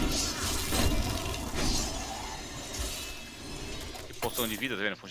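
Game combat effects crash and whoosh.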